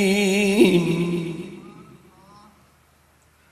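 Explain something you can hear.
A man sings with feeling into a microphone.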